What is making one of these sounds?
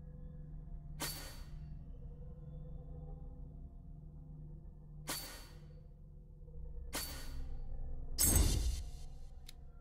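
A game menu plays a short whooshing chime as each point is added.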